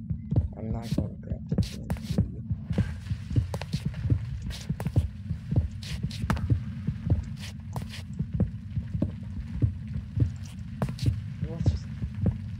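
A pickaxe chips at stone blocks with quick repeated knocks.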